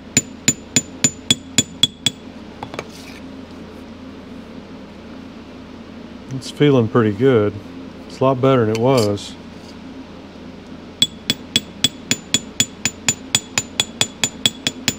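A small hammer taps a metal punch on an aluminium dial plate, each blow giving a short metallic ring.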